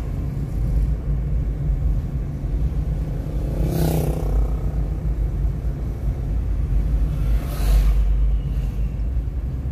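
Tyres roll on a paved road with a low rumble.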